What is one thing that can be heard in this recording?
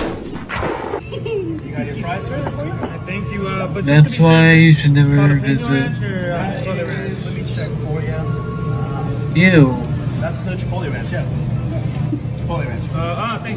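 A man talks to diners in a busy, echoing dining room.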